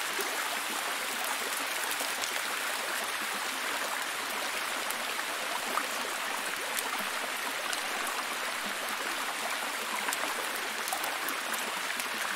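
A waterfall splashes steadily over rocks.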